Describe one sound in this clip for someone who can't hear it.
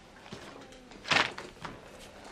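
Papers rustle and flap.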